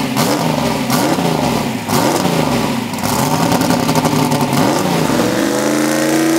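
A V8 drag car idles with a rough, lopey burble.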